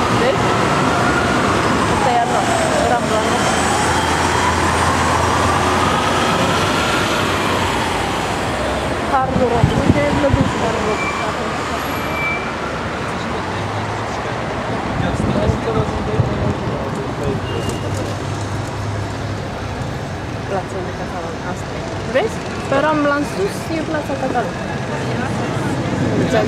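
City traffic roars steadily all around, heard outdoors from a moving vehicle.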